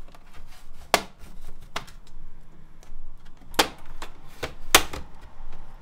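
A plastic pry tool clicks and snaps against a laptop's edge.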